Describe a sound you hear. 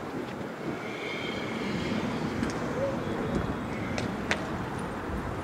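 Fireworks crackle and pop sharply.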